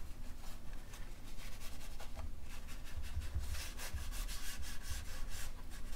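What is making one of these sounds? Hands rub softly across a paper page.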